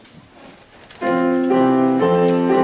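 A piano plays chords.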